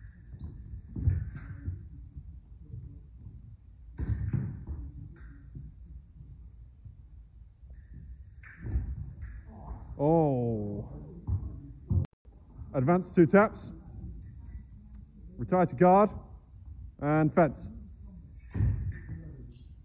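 Feet stamp and thud on a wooden floor in an echoing hall.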